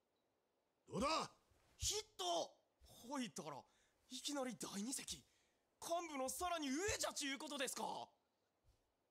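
Other men talk among themselves with excitement.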